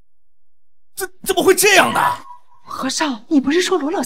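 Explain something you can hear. A woman speaks with surprise, close by.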